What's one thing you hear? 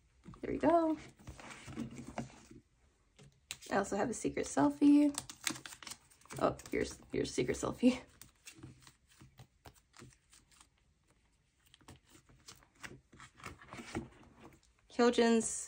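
A plastic binder page rustles and crinkles as it is turned.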